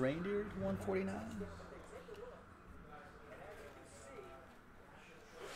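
Trading cards rustle and flick as they are shuffled by hand.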